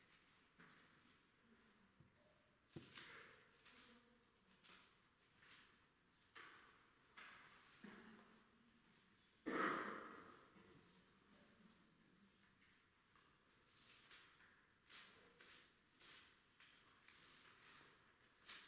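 A middle-aged man reads out slowly into a microphone in a room with some echo.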